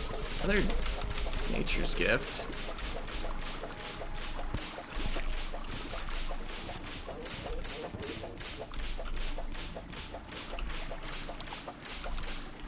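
A weapon swishes in rapid, steady repeated strikes.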